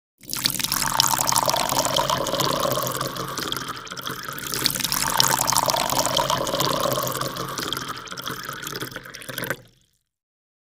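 Water splashes and swirls with a loud rushing sound.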